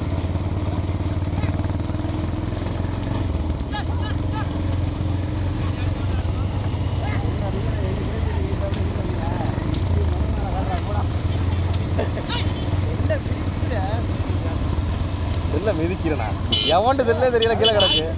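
Bullocks' hooves clop on a paved road.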